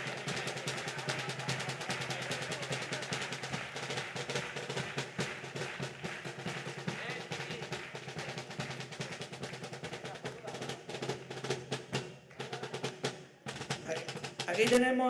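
Guitars strum along with the singing.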